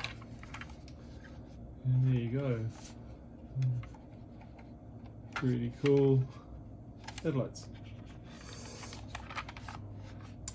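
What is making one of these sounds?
Plastic parts click and rattle as they are handled up close.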